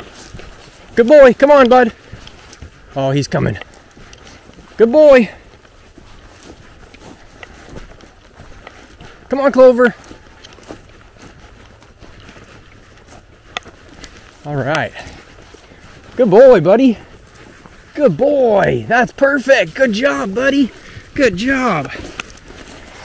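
A coonhound howls in drawn-out calls.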